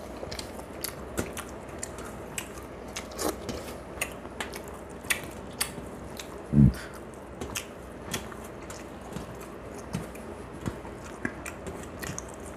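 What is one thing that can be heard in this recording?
A man chews food noisily and smacks his lips close to a microphone.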